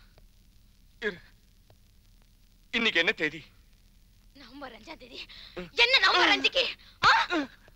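A man speaks with animation, pleading.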